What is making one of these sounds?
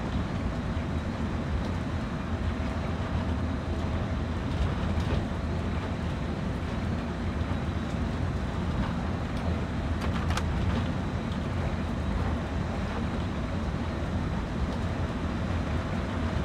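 Train wheels roll and clatter over the rails.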